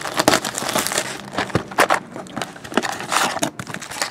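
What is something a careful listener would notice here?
A cardboard box flap rustles as it is pulled open.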